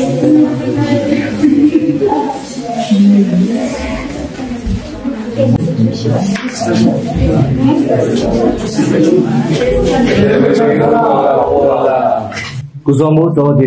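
Young people chat and laugh in a group.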